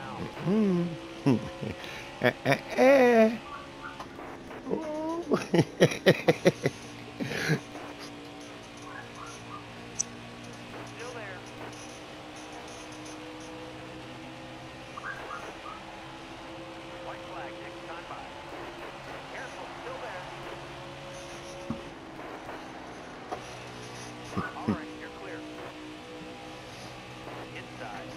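A V8 stock car engine drones at full throttle.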